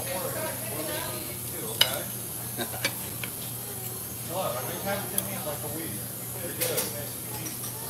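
A fork scrapes and clinks on a plate.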